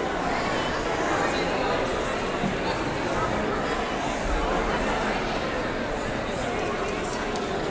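A crowd of men and women chat and greet each other all at once in a large echoing hall.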